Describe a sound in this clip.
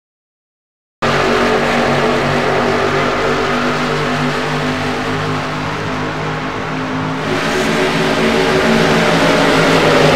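Several race car engines roar loudly at high speed.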